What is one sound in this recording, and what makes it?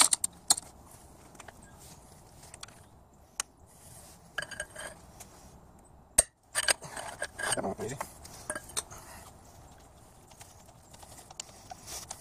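Metal wrenches clink and knock against engine parts.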